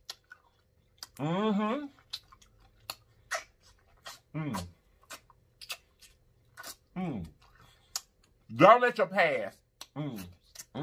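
A man chews food with wet, smacking mouth sounds close up.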